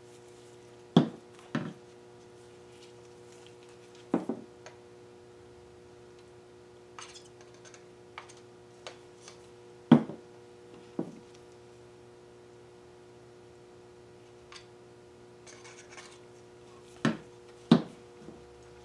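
Plastic bottles knock down onto a table.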